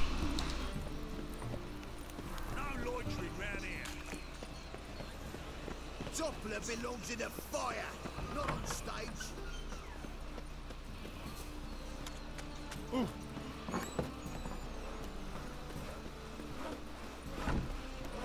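Footsteps run over cobblestones.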